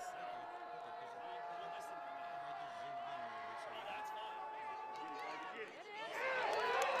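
A crowd of spectators chatters outdoors.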